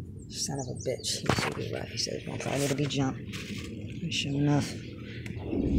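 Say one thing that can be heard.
A man speaks close by.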